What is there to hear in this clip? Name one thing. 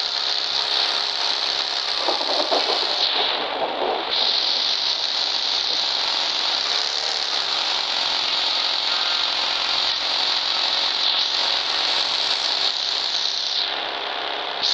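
Heavy rain hisses steadily all around.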